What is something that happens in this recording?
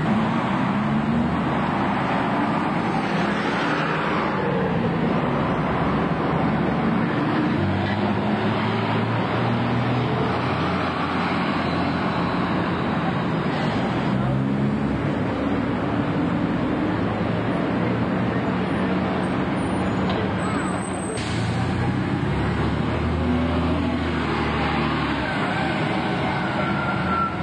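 Bus engines rumble and whine as buses pull past close by.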